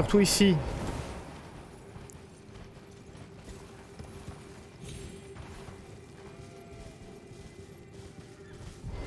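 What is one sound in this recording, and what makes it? Hooves thud steadily on grass and stone as a horse trots.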